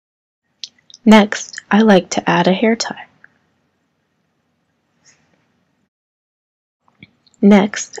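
A young girl talks calmly close by.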